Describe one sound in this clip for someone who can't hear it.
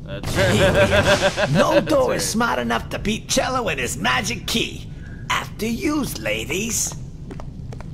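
An elderly man speaks in a gruff, cheerful voice.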